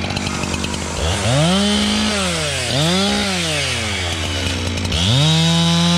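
A chainsaw revs up and down in quick bursts.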